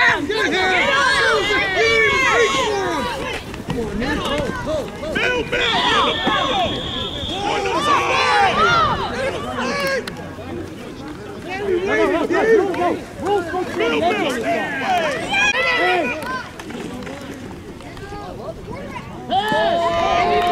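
A crowd of spectators cheers and shouts excitedly outdoors.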